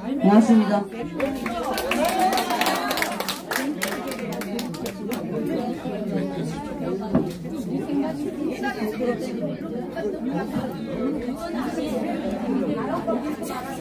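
A murmur of people talking fills the room.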